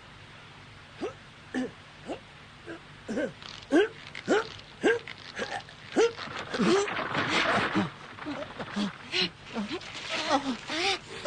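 A young man grunts with strain, close by.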